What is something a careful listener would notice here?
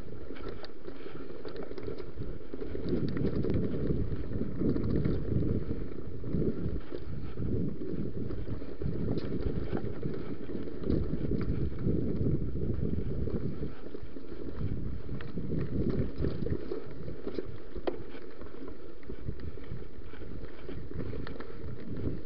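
Wind rumbles loudly past a moving bicycle.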